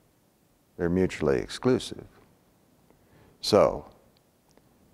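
An elderly man speaks calmly and close to a clip-on microphone.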